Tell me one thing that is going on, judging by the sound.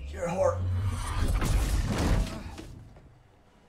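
A heavy body crashes to the ground with a loud thud.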